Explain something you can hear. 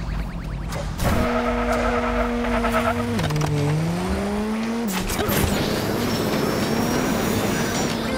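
A race car engine revs up and roars at high speed.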